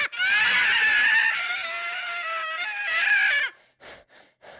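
A cartoon cat shouts in a high, squeaky voice.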